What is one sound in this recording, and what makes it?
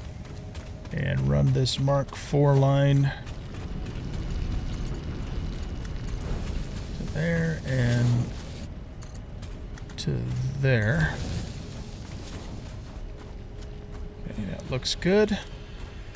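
A middle-aged man speaks calmly into a close microphone in short bursts.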